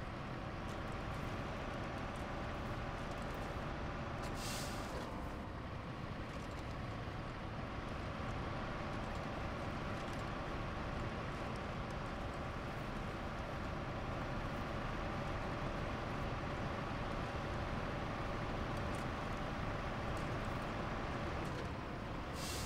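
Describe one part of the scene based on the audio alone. A truck engine rumbles steadily as it drives over rough ground.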